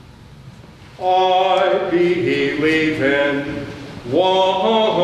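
An elderly man chants loudly.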